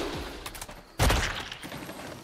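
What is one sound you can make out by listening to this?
A heavy body crashes to the ground with a thud.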